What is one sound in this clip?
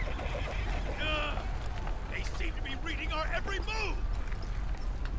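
A man grunts and speaks tensely.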